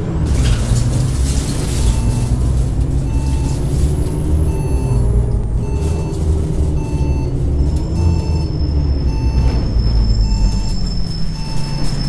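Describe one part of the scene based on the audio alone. A bus engine hums and rumbles as the bus drives, slowing down.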